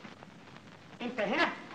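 A woman exclaims loudly with animation.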